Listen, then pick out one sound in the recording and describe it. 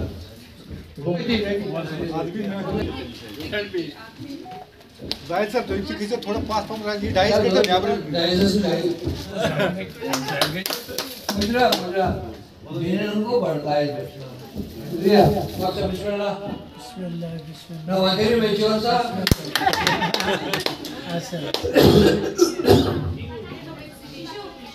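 Several men and women talk and chatter nearby.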